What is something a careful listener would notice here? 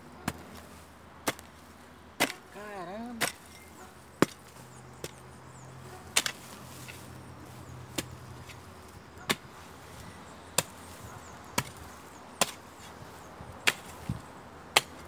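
A hoe thuds repeatedly into the soil.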